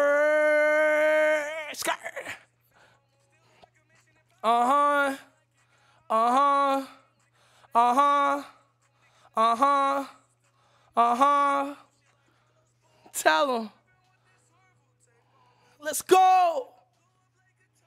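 A young man sings short, repeated vocal phrases close to a microphone.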